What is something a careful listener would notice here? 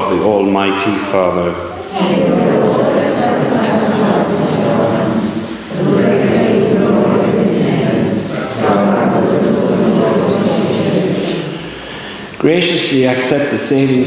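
An elderly man sings a chant through a microphone in an echoing hall.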